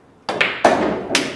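A cue strikes a pool ball with a sharp tap.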